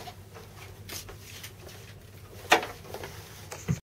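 A guitar body knocks and its strings buzz as it is handled.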